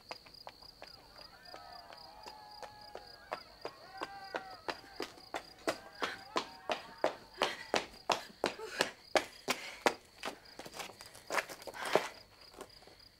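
Footsteps run quickly on a hard path.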